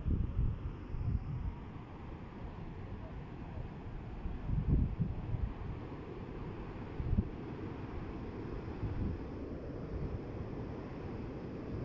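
A fountain splashes and gushes steadily nearby.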